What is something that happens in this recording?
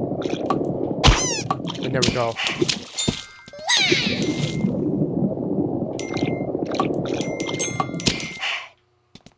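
Bright electronic chimes ring out as coins are collected in a video game.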